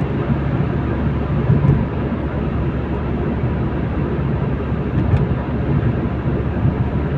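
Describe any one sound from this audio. A car's engine hums steadily, heard from inside the car.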